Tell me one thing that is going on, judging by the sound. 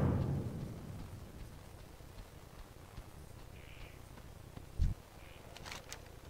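Footsteps thud softly on dry ground.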